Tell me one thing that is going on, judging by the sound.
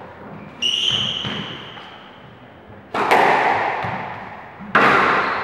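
A squash ball smacks hard against the walls, echoing around the court.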